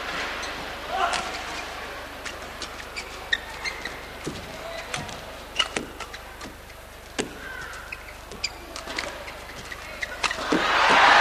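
A shuttlecock is struck back and forth with sharp racket hits.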